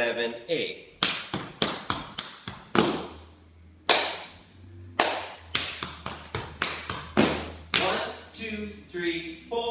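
Tap shoes click and clatter sharply on a wooden floor in an echoing room.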